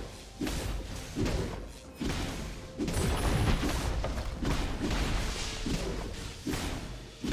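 Magic blasts whoosh and crackle in quick, repeated bursts.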